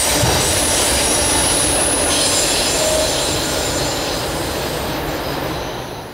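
A freight train rumbles and squeals close by, then fades as it rolls away.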